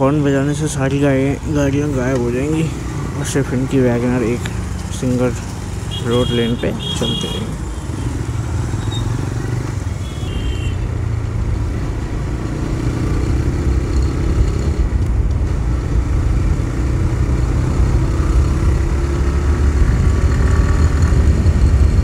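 A motorcycle engine hums as it rides along a road.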